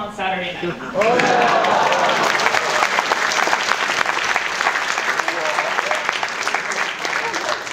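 A crowd claps and cheers loudly.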